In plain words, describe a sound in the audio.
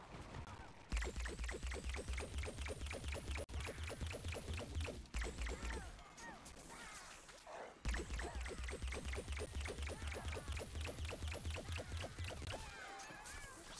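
A game weapon fires in fast bursts.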